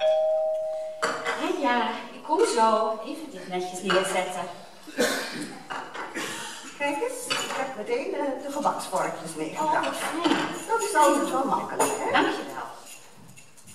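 An elderly woman speaks loudly and with animation, heard from the audience in a large hall.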